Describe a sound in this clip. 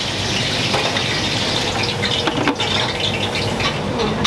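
A lid clanks down onto a grill.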